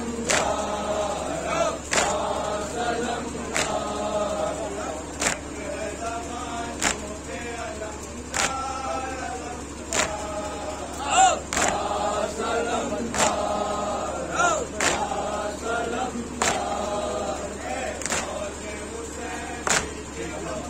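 A group of men chant together nearby.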